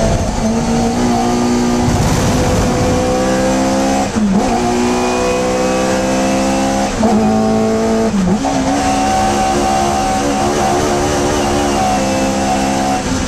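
A small four-cylinder Hillman Imp race car engine roars at full throttle, heard from inside the cockpit.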